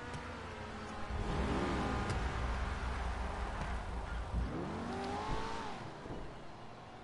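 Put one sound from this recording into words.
A car drives past on a road.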